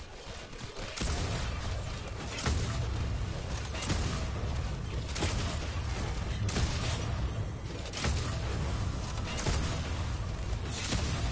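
Gunfire and blasts of a video game battle crackle and boom rapidly.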